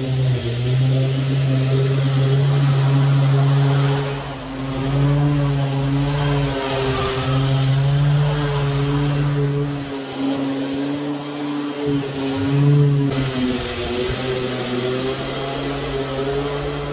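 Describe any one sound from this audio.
Mower blades cut through thick grass.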